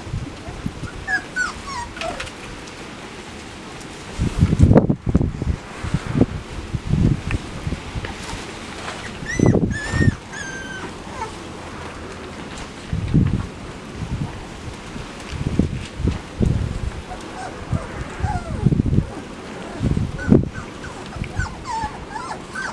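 Puppies whimper and squeak with high, thin cries.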